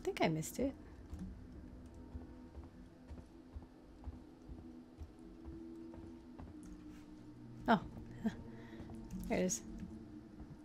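A young woman speaks now and then into a close microphone.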